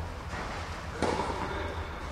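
A tennis ball is struck hard with a racket in a large echoing hall.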